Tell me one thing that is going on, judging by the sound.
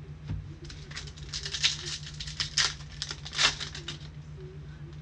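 A hand tears open a crinkly foil wrapper.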